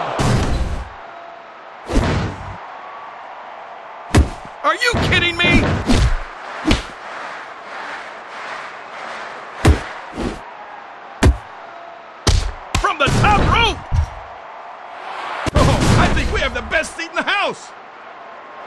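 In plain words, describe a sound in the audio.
Heavy blows and slams thud sharply.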